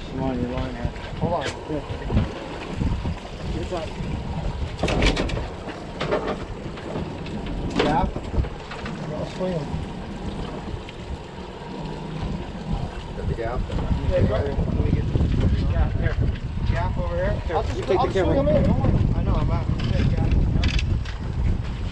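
Waves slap against a boat's hull.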